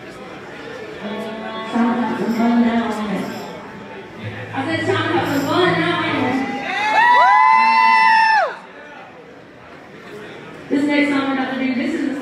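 A woman sings with power into a microphone.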